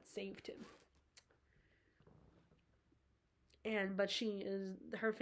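A young woman speaks close to a microphone, with pauses.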